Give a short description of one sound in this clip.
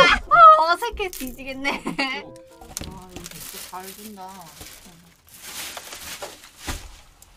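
Plastic wrapping rustles and crinkles.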